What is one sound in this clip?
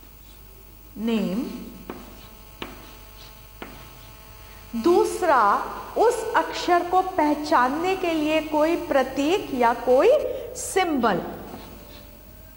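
A middle-aged woman speaks with animation through a microphone.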